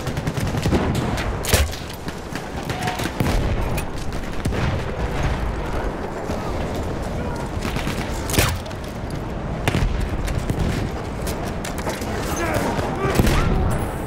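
A heavy machine gun fires bursts.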